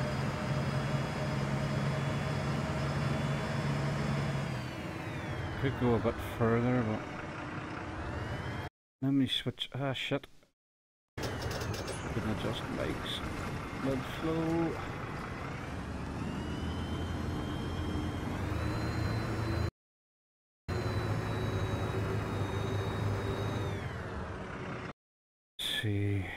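A city bus's diesel engine drones and changes pitch as the bus drives along a road.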